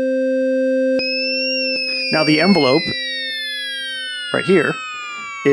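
A high synthesizer tone slides slowly downward.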